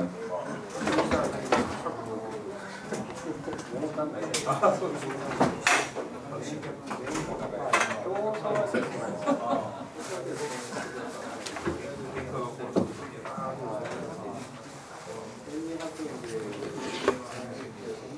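Things knock and thump on a lectern.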